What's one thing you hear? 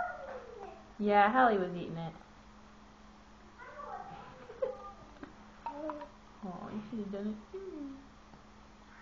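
A baby squeals and babbles up close.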